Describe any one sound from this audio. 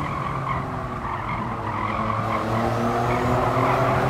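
Tyres screech through a corner.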